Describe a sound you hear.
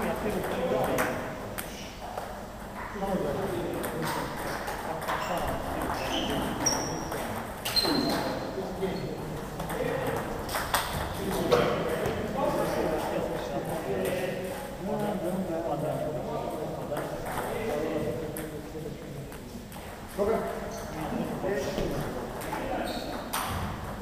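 Men talk in the background of a large echoing hall.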